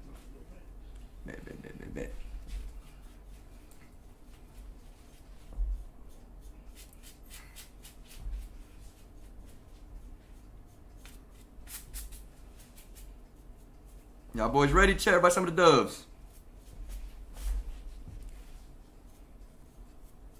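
Hair clippers buzz softly.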